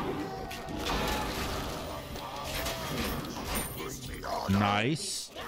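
Magic blasts and weapon hits crackle and clang in a game battle.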